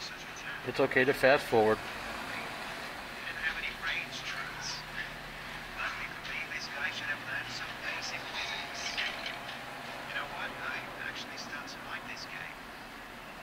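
A man talks with animation, heard through a small phone speaker.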